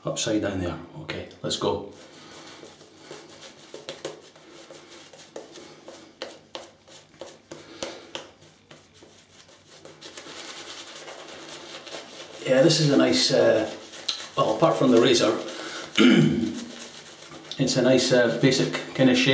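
A shaving brush swishes and scrubs against stubble.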